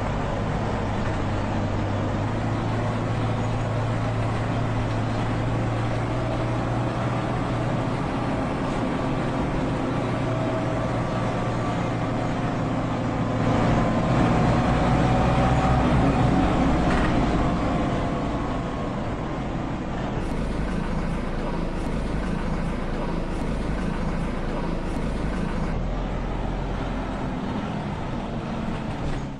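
A bus engine hums and rumbles steadily as the bus drives.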